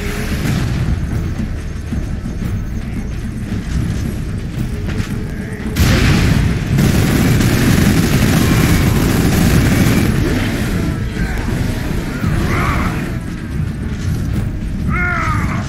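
Heavy armoured footsteps thud on a hard floor.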